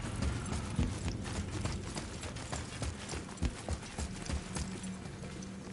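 Heavy armoured footsteps thud on a hard floor.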